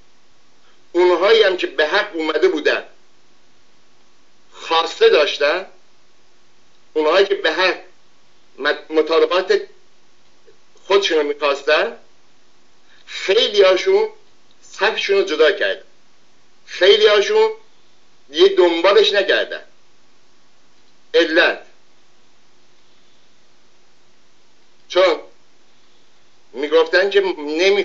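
An elderly man speaks calmly and closely into a microphone, in short phrases with pauses.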